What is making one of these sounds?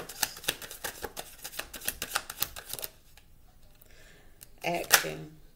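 Playing cards are shuffled and laid down with quick clicks and slaps.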